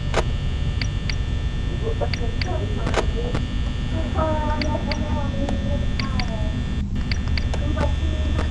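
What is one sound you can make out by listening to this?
A desk fan hums steadily.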